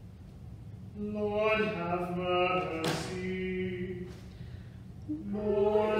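An elderly woman chants slowly in a resonant, echoing room.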